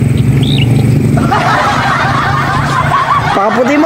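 A man laughs and chuckles close by.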